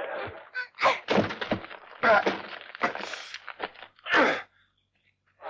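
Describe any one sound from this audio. A man grunts and cries out.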